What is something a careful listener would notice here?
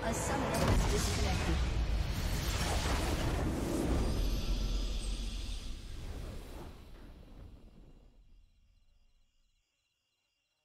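A triumphant game victory fanfare swells loudly and fades away.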